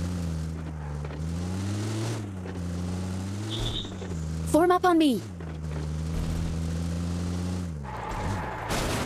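A vehicle engine hums and revs.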